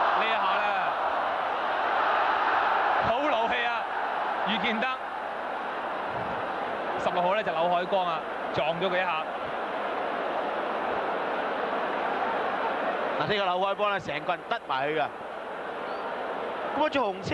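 A large crowd roars steadily in an open stadium.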